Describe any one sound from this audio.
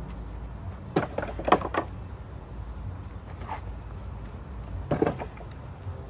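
Thrown knives thud sharply into a wooden board.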